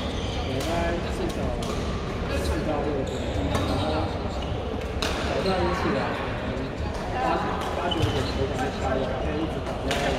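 Shuttlecocks are struck with sharp taps of rackets in a large echoing hall.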